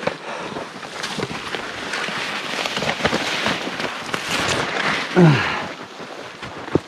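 Snow-laden branches brush and rustle against a nylon jacket.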